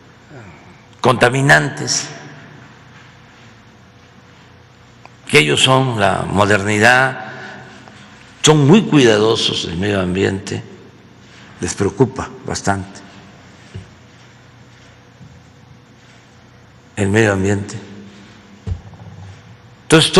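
An elderly man speaks calmly into a microphone, in bursts with pauses.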